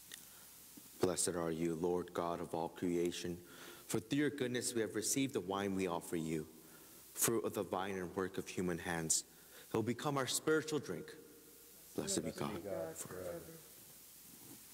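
A young man chants in a steady sung voice, heard close through a microphone.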